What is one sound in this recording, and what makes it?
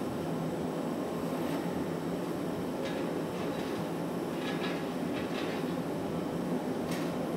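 A furnace roars steadily nearby.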